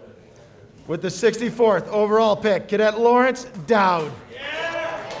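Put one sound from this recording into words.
A group of young men shout loudly together in an echoing room.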